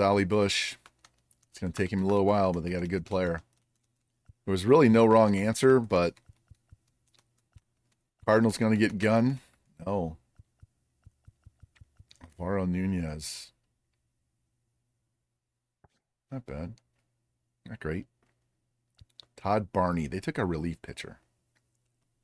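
An elderly man talks calmly into a microphone, in short bursts with pauses.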